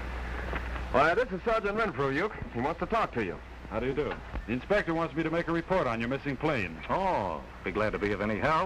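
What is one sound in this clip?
A man speaks with animation, close by and a little muffled.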